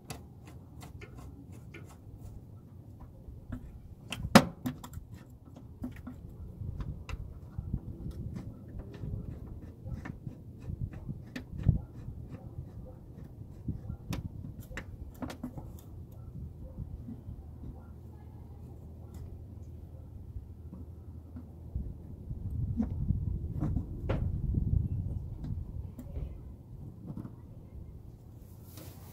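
A metal part clicks and scrapes as it is turned by hand.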